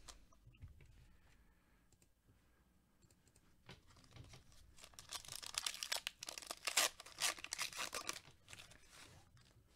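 A foil wrapper crinkles and rustles in gloved hands.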